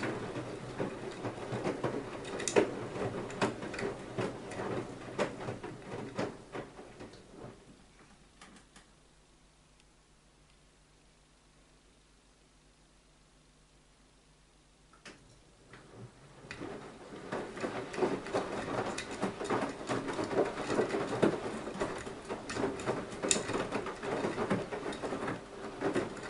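Water and laundry slosh and splash inside a turning washing machine drum.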